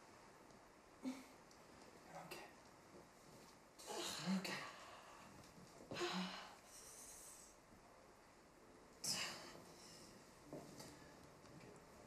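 A young woman sobs and gasps in distress close by.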